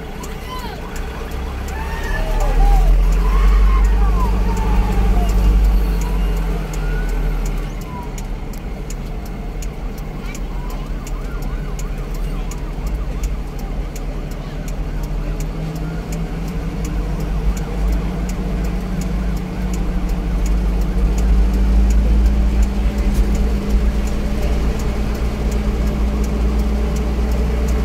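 A truck engine rumbles and labours uphill close by.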